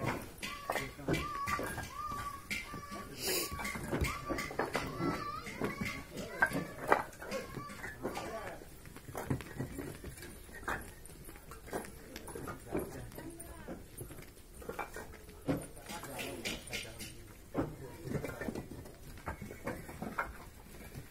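Bricks clatter and clink as workers toss and stack them.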